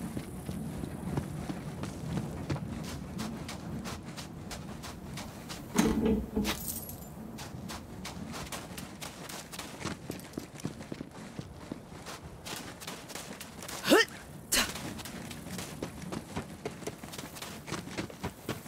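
Footsteps crunch steadily over sand.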